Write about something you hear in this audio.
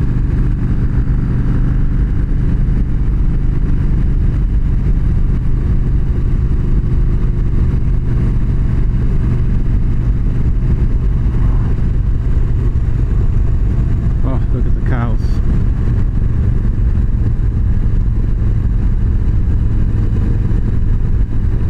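A motorcycle engine rumbles steadily while riding along a road.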